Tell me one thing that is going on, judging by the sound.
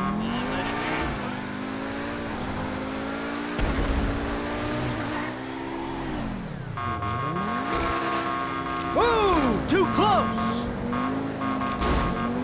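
A sports car engine roars and revs up and down as the car speeds along.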